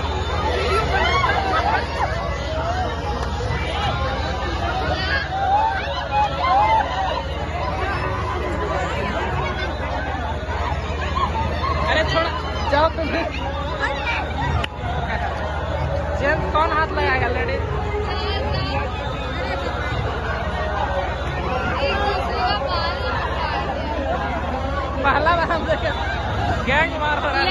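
Young women shout and scream as they scuffle.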